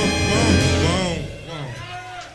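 A big band of brass and saxophones plays loudly and ends on a held chord.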